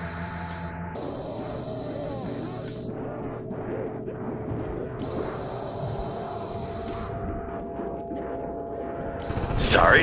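Zombies growl and moan close by.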